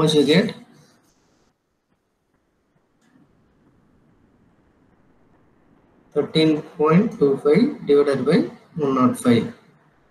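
A young man speaks calmly into a close microphone, pausing between phrases.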